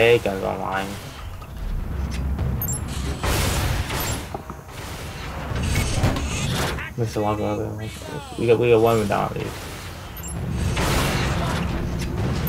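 A heavy gun fires in loud, booming blasts.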